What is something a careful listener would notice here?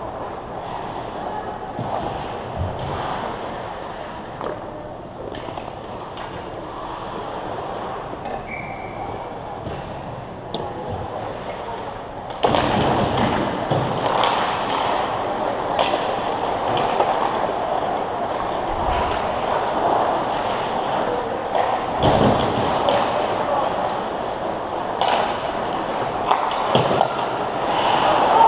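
Hockey sticks click against the ice and puck.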